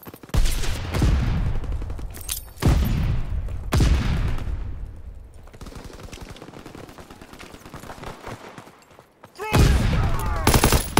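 Loud gunshots boom and echo.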